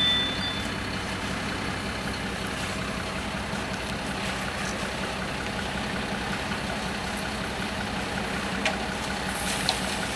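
Rakes scrape through wet concrete.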